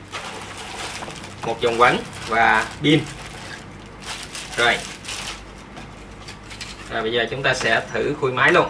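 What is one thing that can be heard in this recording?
Plastic packaging rustles as it is handled.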